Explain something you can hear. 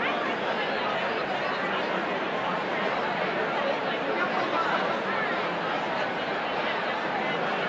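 A large crowd of men and women chatters loudly in a big echoing hall.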